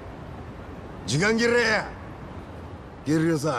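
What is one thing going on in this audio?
An older man speaks in a rough, harsh voice.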